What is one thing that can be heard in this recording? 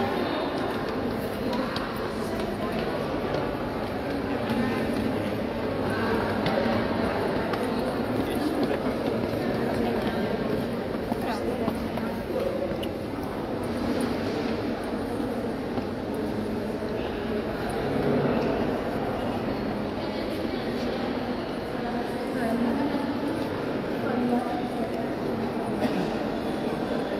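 A crowd of men and women murmurs in an echoing space.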